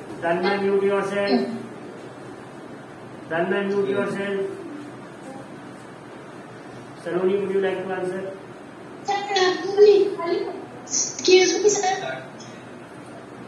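A child speaks in short bursts through an online call, heard over a loudspeaker.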